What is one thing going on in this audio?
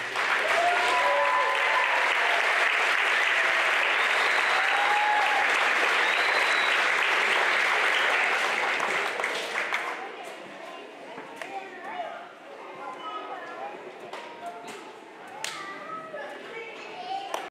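Children chatter and call out in a large room.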